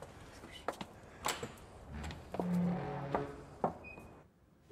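A door latch clicks and rattles.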